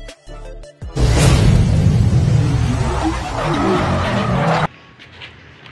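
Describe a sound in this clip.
A tyre spins and screeches on pavement with a loud roar.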